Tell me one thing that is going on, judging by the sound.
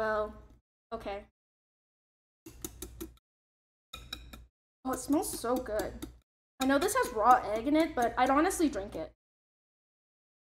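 A whisk clinks against a bowl.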